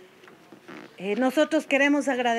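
A woman speaks firmly into a microphone.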